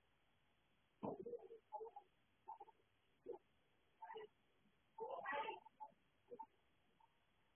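Cloth rustles as a man shifts in a hammock.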